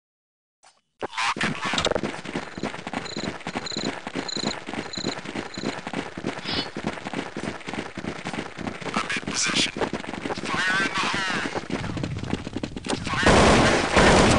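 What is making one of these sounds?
Footsteps of several people run quickly over hard ground.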